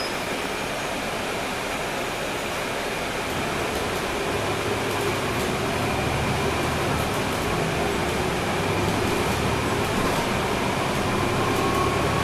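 A bus engine hums and rumbles steadily, growing louder as the bus pulls away.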